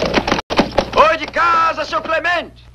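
A man calls out loudly outdoors.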